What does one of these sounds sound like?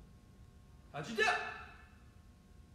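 A young man speaks with animation in an echoing room.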